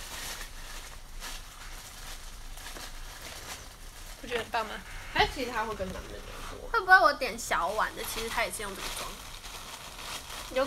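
Cardboard food boxes rustle and tap as they are handled.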